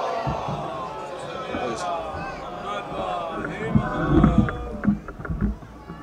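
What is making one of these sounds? A crowd of men and women murmur and talk outdoors.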